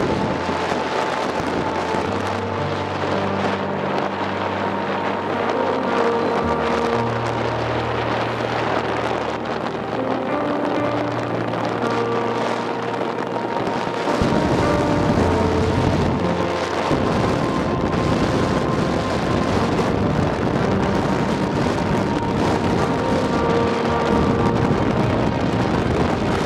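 Tyres roll along a paved road with a steady rushing noise.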